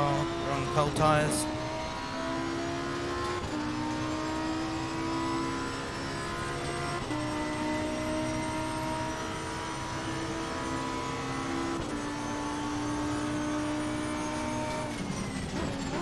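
A racing car engine drones steadily, its pitch climbing and then dropping as it shifts gears.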